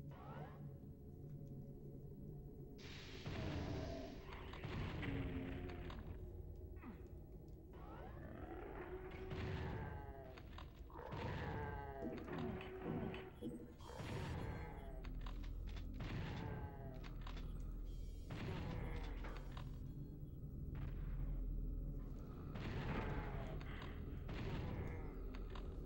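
Gunshots and game sound effects ring out from a video game.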